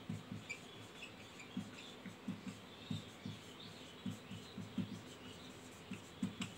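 A marker squeaks as it writes on a whiteboard.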